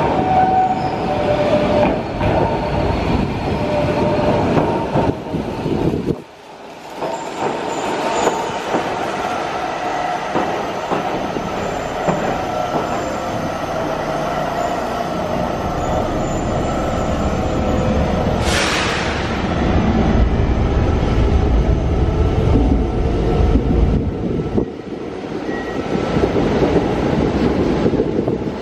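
A train rumbles into the station and rolls past close by.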